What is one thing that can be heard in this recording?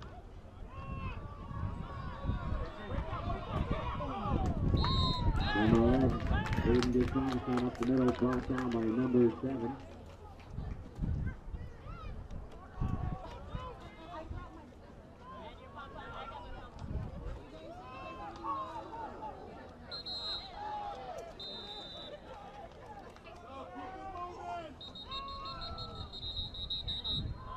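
Football players collide with thuds of padding.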